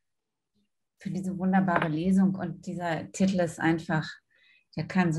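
A middle-aged woman talks with animation over an online call.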